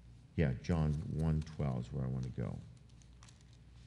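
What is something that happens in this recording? An elderly man speaks calmly into a microphone in an echoing room.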